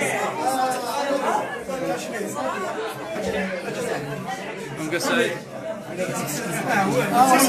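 An elderly man laughs close by.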